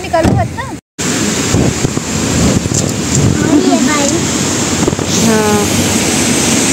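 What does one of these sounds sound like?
A young girl speaks excitedly.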